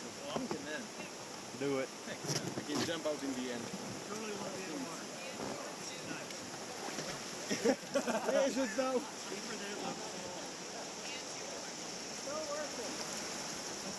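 Several people talk and call out close by, outdoors.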